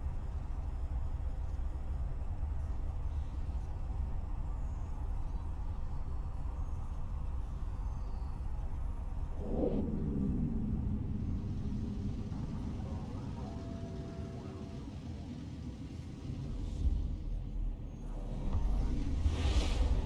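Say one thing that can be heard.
A deep engine hum rumbles steadily.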